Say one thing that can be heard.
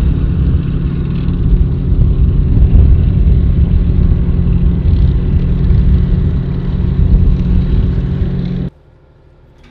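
Heavy armoured vehicle engines rumble loudly as they drive past.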